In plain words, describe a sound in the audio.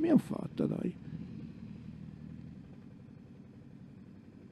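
A motorcycle engine rumbles past and fades.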